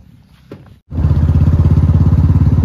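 A motorcycle engine runs with a steady, loud rumble.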